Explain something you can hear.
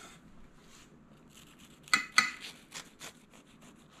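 A knife cuts through crisp toasted bread.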